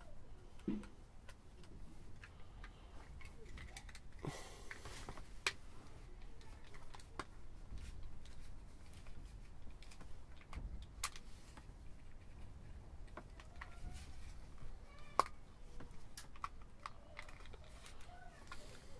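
Hands handle a plastic device, with small clicks and knocks.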